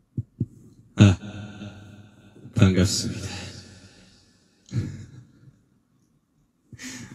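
A young man sings softly into a microphone, with a lingering echo.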